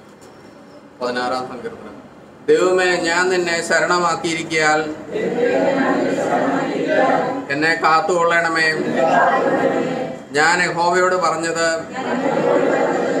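An elderly man reads aloud in a bare, echoing room.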